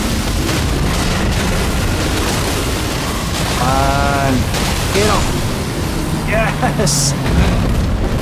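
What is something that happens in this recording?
Heavy blows crash and thud in a fierce fight.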